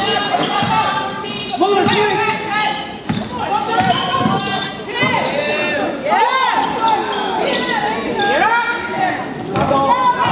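Sneakers squeak sharply on a hard court, echoing in a large gym.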